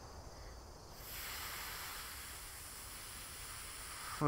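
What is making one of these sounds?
Water rushes in a steady, muffled hiss.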